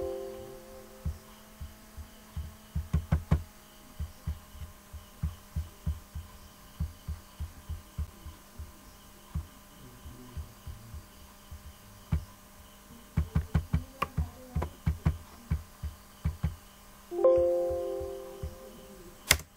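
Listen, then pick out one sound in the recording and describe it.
A computer alert chime sounds.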